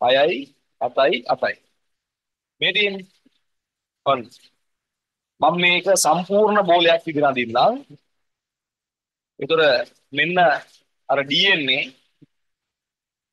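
A man speaks calmly into a microphone, explaining in short phrases.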